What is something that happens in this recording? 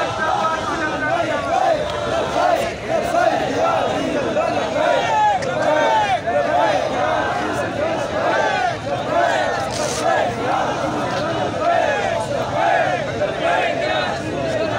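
A large crowd of men shouts and chants loudly outdoors.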